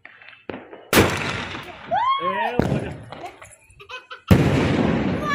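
A firework bursts with a loud bang.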